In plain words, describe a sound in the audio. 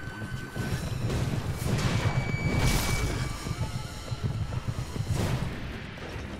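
Horse hooves pound on the ground.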